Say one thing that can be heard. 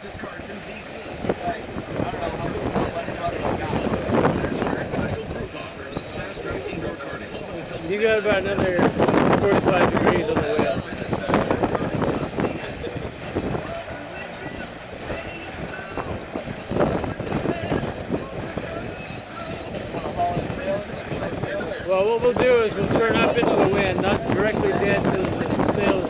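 Water splashes against a sailboat's hull.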